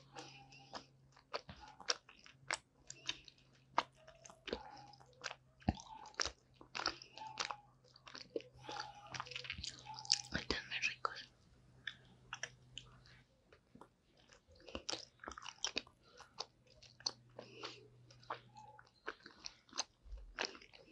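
A young woman chews gummy candy close to a microphone, with wet, sticky smacking sounds.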